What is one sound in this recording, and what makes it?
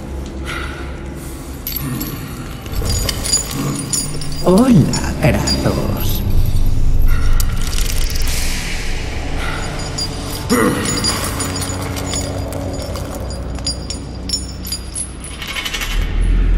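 A heavy chain clanks and rattles.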